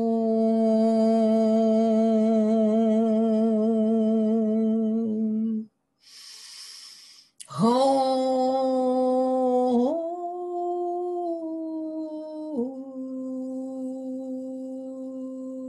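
A woman sings long, held notes close by, with a wavering tone.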